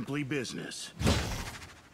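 A magical spell bursts with a loud whoosh and fades.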